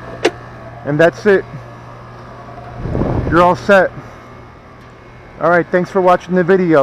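An outdoor air conditioner hums steadily nearby.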